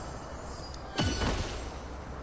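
A sudden loud magical whoosh bursts nearby.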